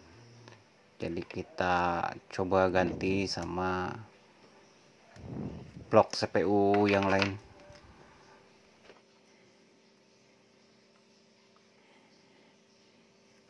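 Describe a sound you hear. Small plastic parts click and tap as circuit boards are handled.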